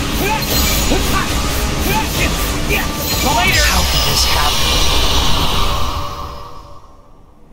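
A magical energy shield crackles and hums loudly.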